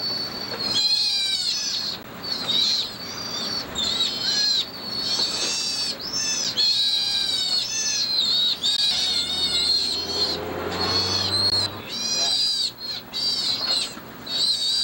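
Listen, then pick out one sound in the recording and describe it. A sea otter squeals in high-pitched bursts.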